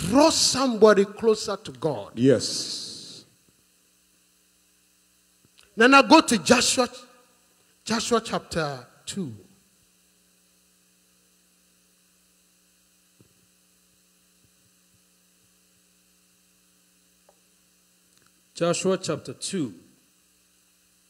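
A man preaches with passion into a microphone, in bursts with long pauses.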